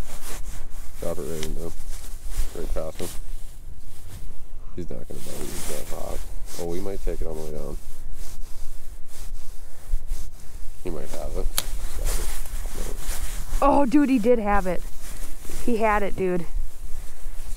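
A man talks nearby in a relaxed way.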